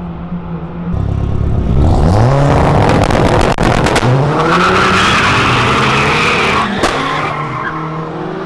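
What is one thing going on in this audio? Car engines rev loudly at close range.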